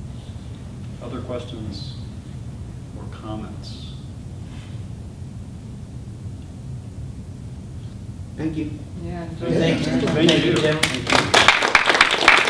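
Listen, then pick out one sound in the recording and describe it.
A man speaks to an audience, heard from a distance.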